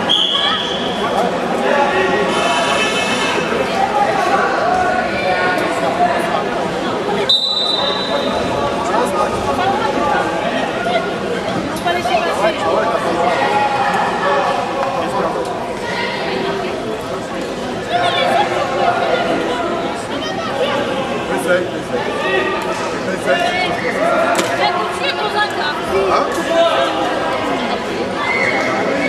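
Wrestlers' feet scuff and thud on a mat.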